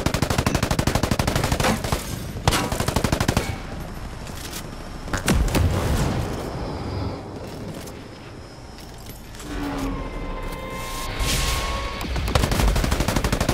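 A light machine gun fires in rapid bursts.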